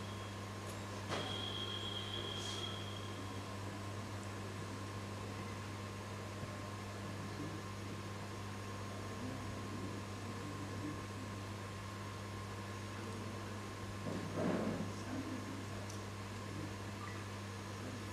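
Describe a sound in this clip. A man speaks slowly through a microphone and loudspeakers in an echoing hall.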